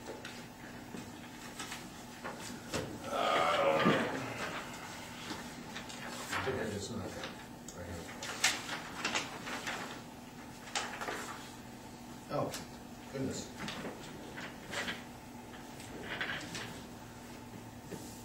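Men speak quietly at a distance.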